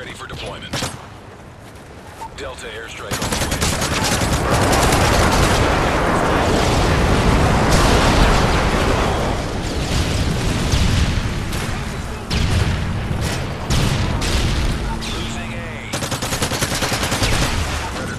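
An assault rifle fires.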